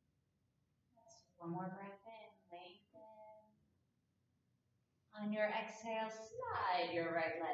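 A young woman speaks calmly and softly into a close microphone.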